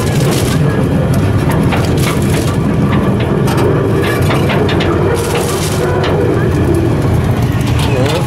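A plastic bag crinkles and rustles close by.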